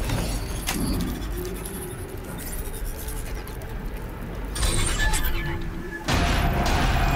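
A device hums and crackles with electricity.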